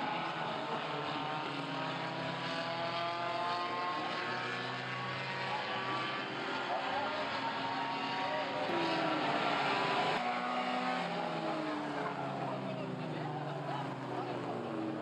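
Race car engines roar and drone steadily around a track, rising and falling in pitch.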